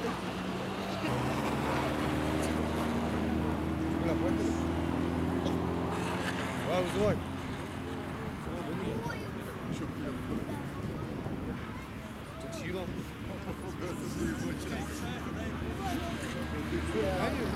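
Tyres crunch on snow and ice.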